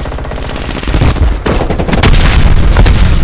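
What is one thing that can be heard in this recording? A grenade explodes with a loud roar.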